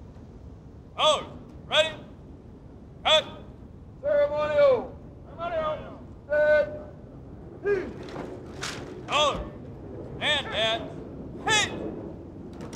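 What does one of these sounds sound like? A man shouts drawn-out military commands outdoors.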